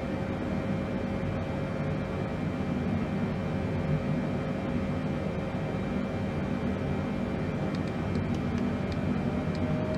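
Jet engines hum steadily in a cockpit.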